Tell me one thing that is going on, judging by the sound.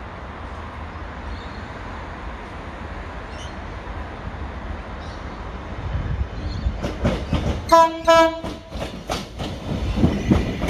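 A train approaches and rumbles closer.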